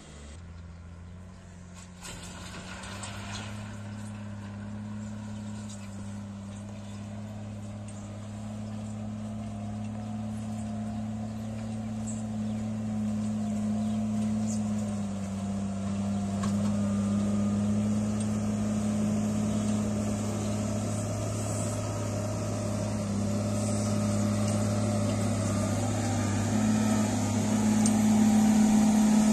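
Soil scrapes and pushes along under a loader's bucket.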